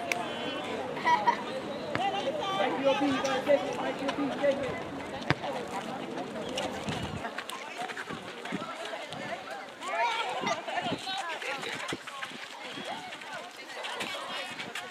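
Young women call out to each other during a netball game outdoors.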